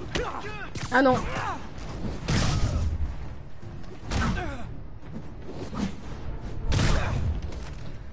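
Blows land with heavy thuds in a fight.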